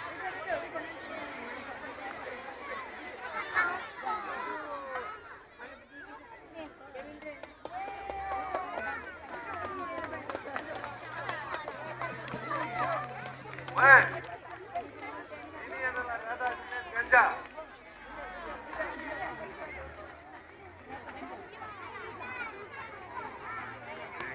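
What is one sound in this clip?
A large crowd of children chatters outdoors.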